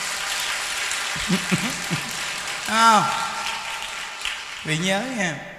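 A crowd applauds, clapping steadily and then fading.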